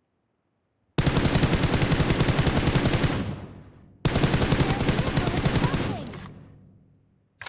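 A rifle fires in rapid bursts, loud and close, with the shots echoing away.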